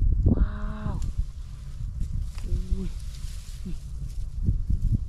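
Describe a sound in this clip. Dry straw rustles as hands rummage through it.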